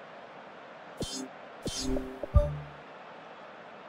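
Short electronic menu blips and whooshes sound as a game menu changes.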